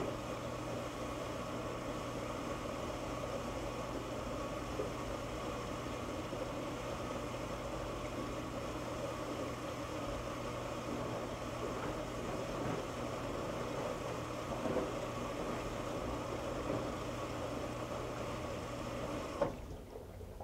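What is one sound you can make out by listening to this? Water sloshes and splashes inside a washing machine drum.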